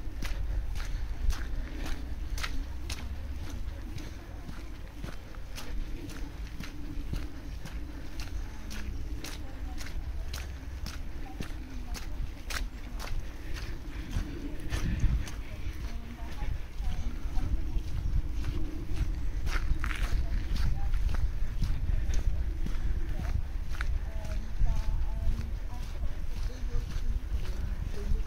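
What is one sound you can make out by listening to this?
Footsteps squelch and crunch on a muddy forest track.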